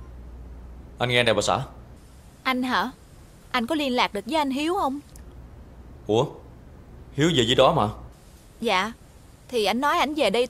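A man talks calmly on a phone.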